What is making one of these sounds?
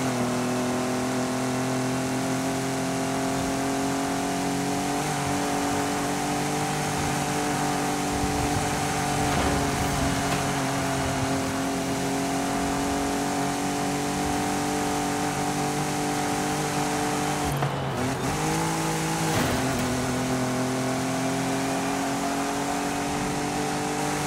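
A car engine roars steadily at high revs, dropping briefly and climbing again near the end.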